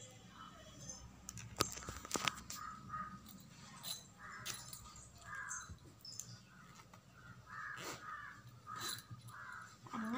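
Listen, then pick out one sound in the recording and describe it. Fabric rustles softly as it is handled close by.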